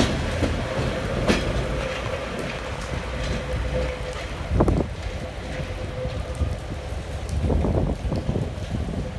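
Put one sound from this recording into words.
A train engine hums as the train pulls away into the distance.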